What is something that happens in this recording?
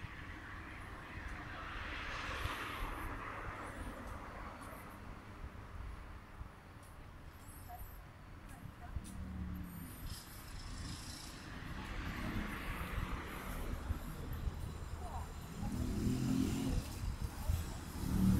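Cars pass by on a nearby road, swelling and fading.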